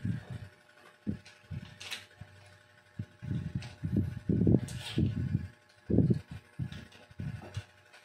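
A drill chuck clicks and ratchets as it is tightened by hand.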